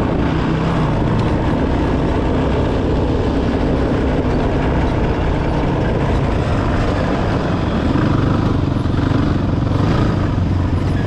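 Tyres crunch and rumble over a dirt track.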